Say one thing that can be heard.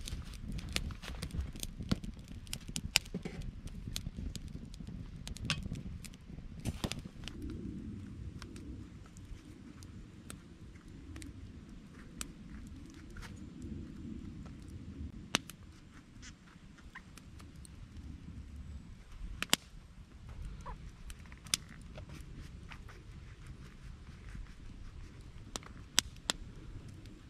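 A campfire crackles and pops close by.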